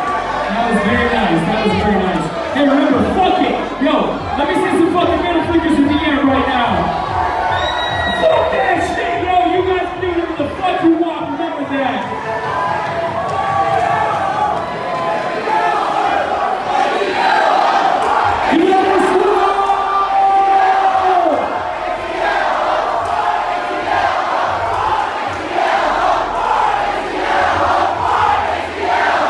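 A big crowd cheers and shouts.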